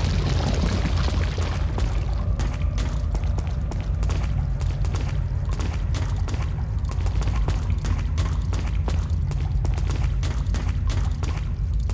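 Footsteps run over a stone floor.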